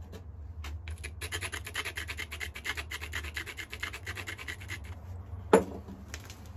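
A stone scrapes with a rapid gritty rasp against another stone.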